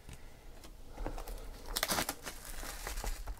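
A cardboard box rustles and scrapes as hands handle it.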